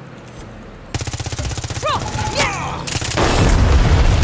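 A rifle fires in quick bursts.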